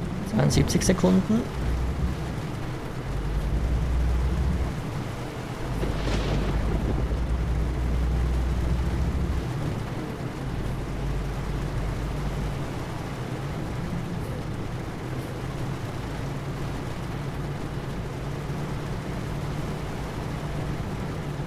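A truck engine drones steadily at low revs.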